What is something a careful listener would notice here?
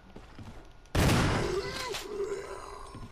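A gunshot bangs and rings out.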